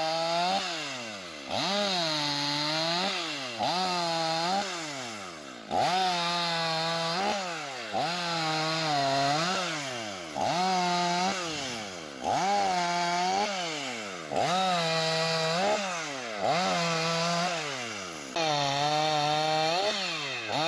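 A chainsaw revs up and down over and over, cutting into wood.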